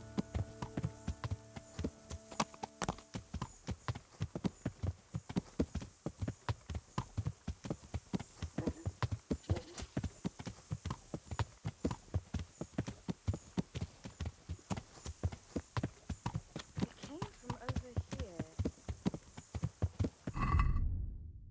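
Footsteps crunch steadily on a dirt path at a quick pace.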